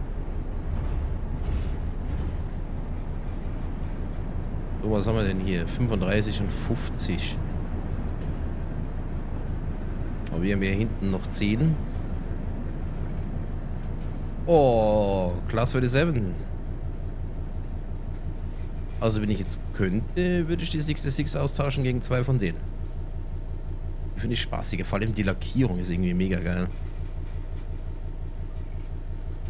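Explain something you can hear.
A locomotive engine hums low and steady.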